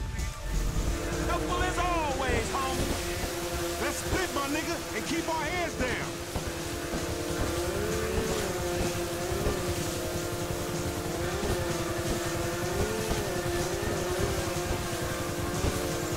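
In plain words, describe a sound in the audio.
Water splashes and hisses against a speeding jet ski.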